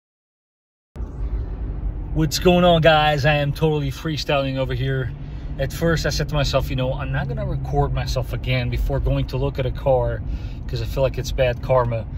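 A car's engine hums steadily from inside.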